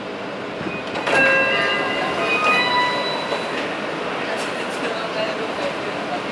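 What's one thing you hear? Train wheels squeal and click on the rails.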